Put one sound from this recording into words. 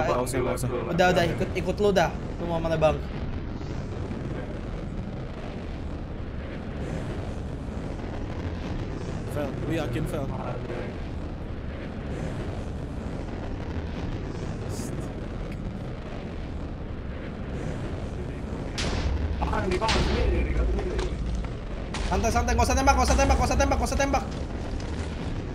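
A young man talks with animation into a close microphone, in bursts.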